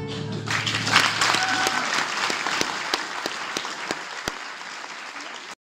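An audience applauds in a room, the clapping slowly dying away.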